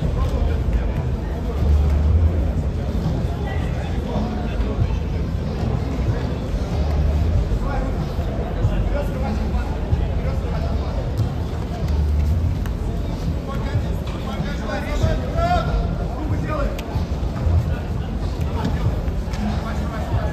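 A crowd murmurs and chatters nearby in a large, noisy space.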